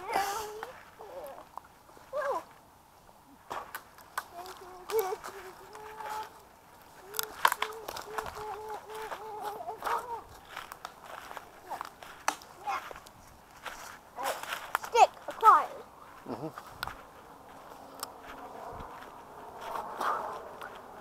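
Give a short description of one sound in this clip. Dry leaves crunch underfoot as a child walks.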